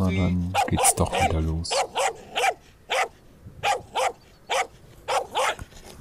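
A dog barks repeatedly outdoors.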